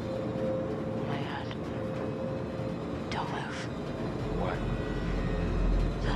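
A young woman speaks in a frightened hush, close by.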